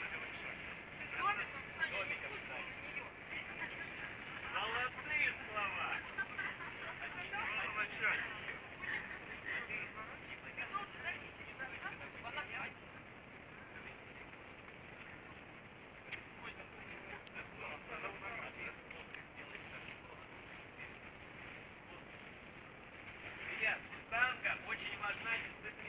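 Young men and women chat and laugh nearby outdoors.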